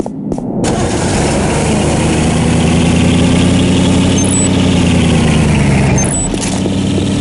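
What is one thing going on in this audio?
A vehicle engine hums and revs as it drives.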